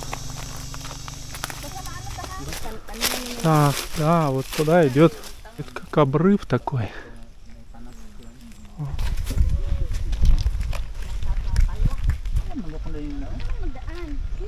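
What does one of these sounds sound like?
Footsteps scuff along a path outdoors.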